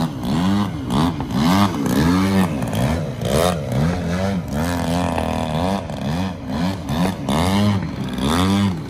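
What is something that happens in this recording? A model airplane engine buzzes loudly, its pitch rising and falling as it swoops and turns.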